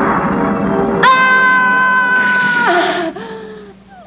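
A young woman screams in pain.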